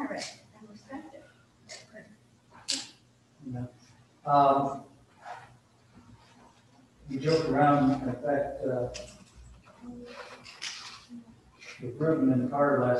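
A middle-aged man speaks calmly in a room with some echo.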